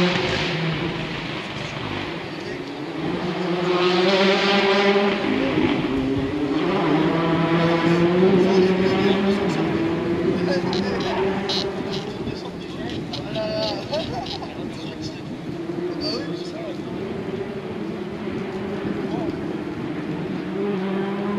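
A crowd of spectators chatters in the distance, outdoors.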